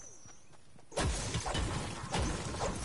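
A pickaxe strikes rock with sharp repeated blows.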